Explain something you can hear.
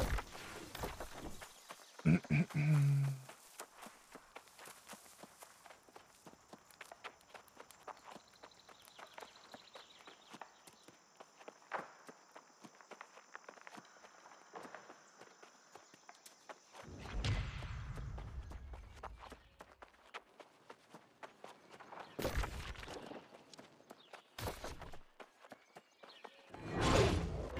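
Footsteps run quickly over dirt and stone.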